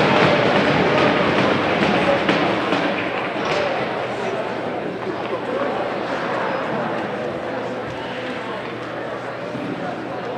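A crowd cheers and chatters in a large echoing rink.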